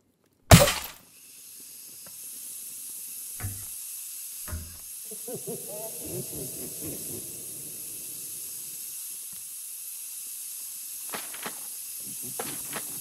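Broken monitors hiss steadily.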